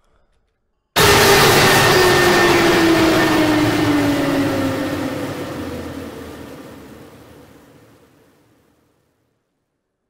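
A loud electronic crash rings out and slowly fades away.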